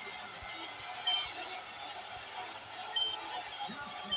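Soft electronic blips sound as text advances.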